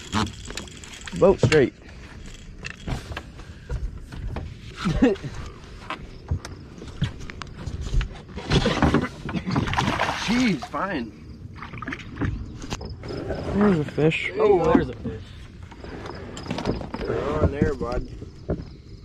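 A young man talks excitedly nearby.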